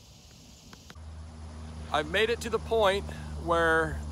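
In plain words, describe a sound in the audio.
A man speaks calmly and close up, outdoors.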